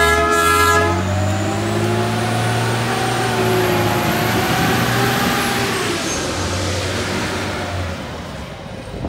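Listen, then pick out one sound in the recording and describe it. A diesel railcar mover's engine revs up and rumbles.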